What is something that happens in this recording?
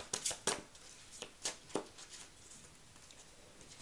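Playing cards are shuffled with quick soft clicks.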